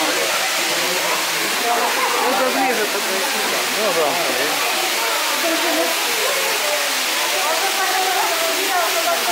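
A crowd of men and women chatters nearby, their voices echoing off rock walls.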